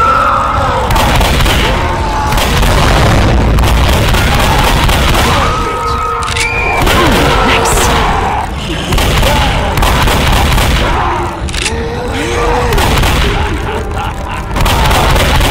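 A monster roars and growls close by.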